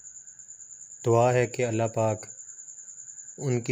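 A man speaks expressively into a microphone.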